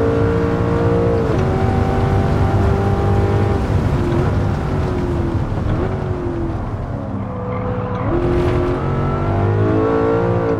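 A racing car engine roars at high revs, its pitch dropping and rising as it shifts gears.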